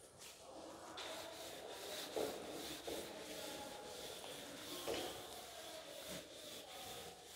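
A duster rubs and scrapes across a chalkboard.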